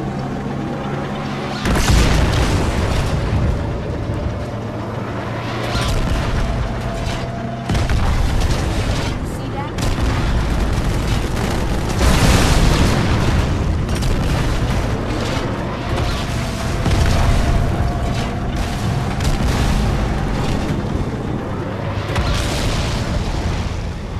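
Gunfire crackles repeatedly.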